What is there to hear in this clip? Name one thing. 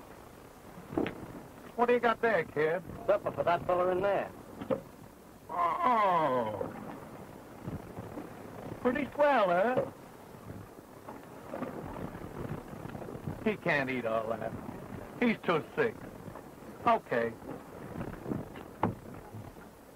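A young man talks in a lively way, close by.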